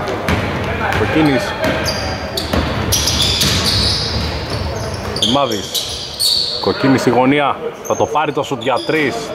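Young men shout to each other across the court.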